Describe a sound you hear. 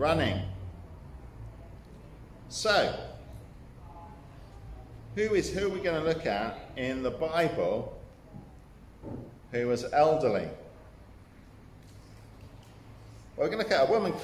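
A middle-aged man speaks calmly and clearly, close by, with pauses.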